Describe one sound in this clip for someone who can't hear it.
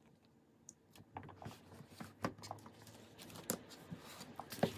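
Book pages rustle and flap as they are turned.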